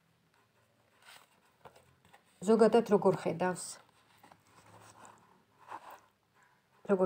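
Playing cards rustle softly as they are handled.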